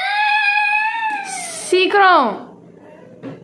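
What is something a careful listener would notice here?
A woman near by lets out a long, loud, drawn-out vocal cry that falls in pitch.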